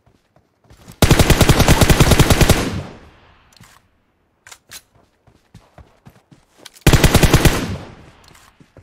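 A rifle fires rapid bursts of shots that echo away.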